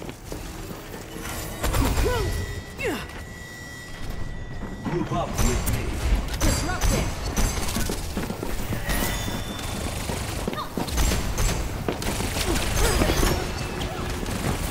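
Gunfire and energy blasts crackle in a fast-paced game fight.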